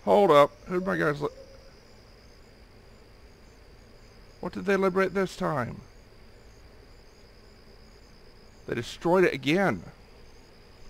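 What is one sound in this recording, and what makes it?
A man speaks casually into a close microphone in short bursts.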